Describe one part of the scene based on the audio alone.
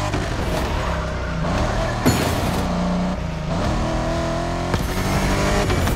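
A racing car engine roars and revs up and down at high speed.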